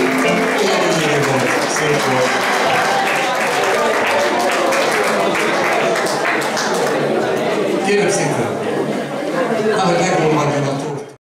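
An electric guitar plays a lively tune.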